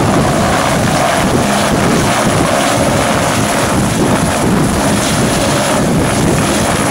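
A helicopter engine roars loudly close by.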